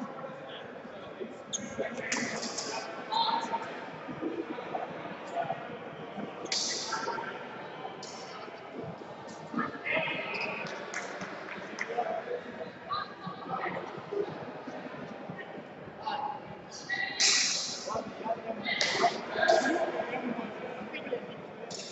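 Fencers' blades clash and clatter in a large echoing hall.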